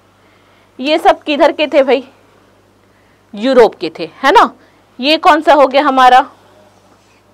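A young woman speaks clearly and with animation into a close microphone, in short bursts.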